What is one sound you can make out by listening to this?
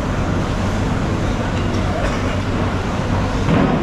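A large fish thuds as it is rolled over on a wet wooden board.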